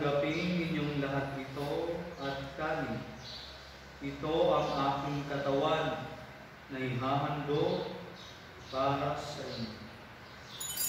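A man chants in a sung voice in a room with some echo.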